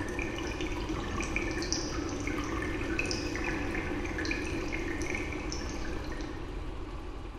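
A thin stream of water trickles and drips from a small glass vessel.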